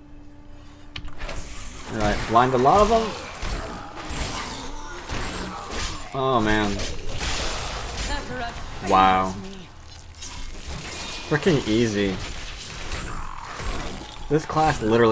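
Video game battle effects clash and crackle.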